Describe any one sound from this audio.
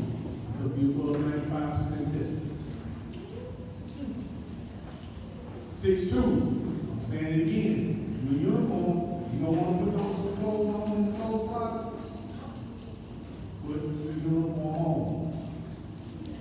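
A young man speaks casually close by.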